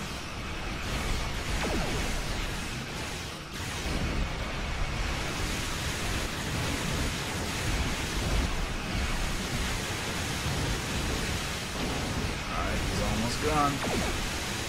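Explosions rumble in a space battle.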